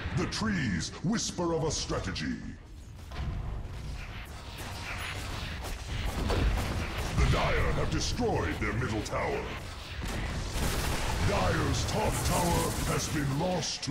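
Magic spells whoosh and crackle during a fantasy battle.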